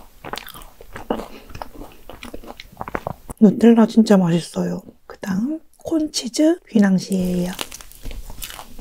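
Crumbly cake crunches and squishes as a young woman bites and chews close to a microphone.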